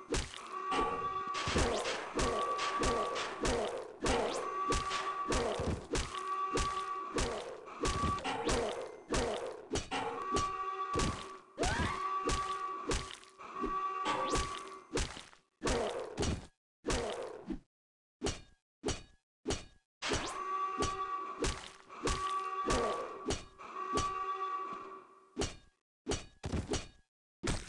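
An axe hacks into zombies with heavy, repeated blows.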